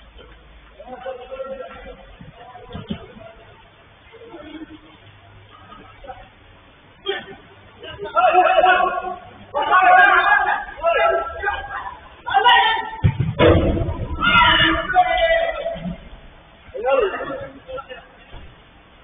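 Men shout to each other across an echoing indoor pitch.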